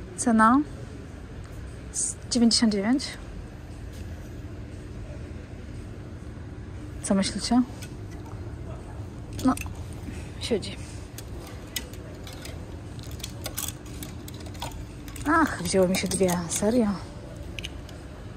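Plastic hangers clack and scrape along a metal rail.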